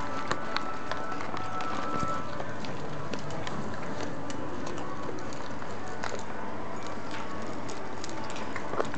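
Small dogs' claws patter and click on a hard floor.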